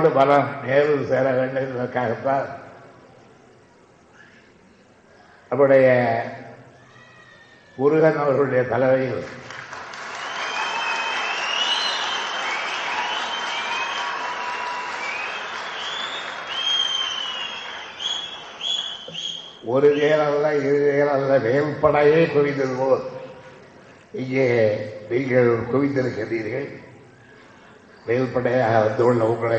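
An elderly man speaks firmly into a microphone.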